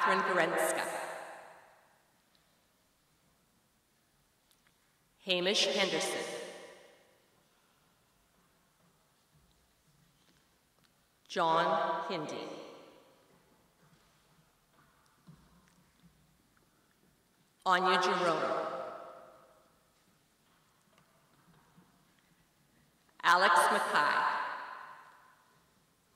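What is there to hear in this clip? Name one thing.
A woman reads out names through a microphone and loudspeaker, echoing in a large hall.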